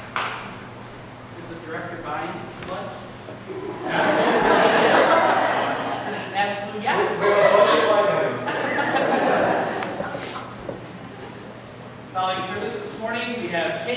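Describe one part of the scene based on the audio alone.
A man speaks with animation into a microphone in a large echoing room.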